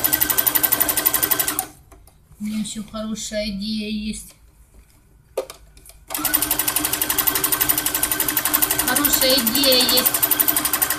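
A sewing machine stitches with a fast, steady whir.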